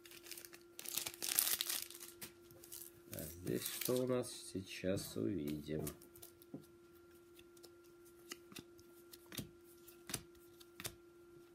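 Trading cards rustle and flick in hands.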